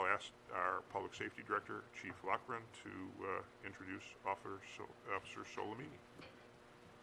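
A man speaks calmly over a microphone.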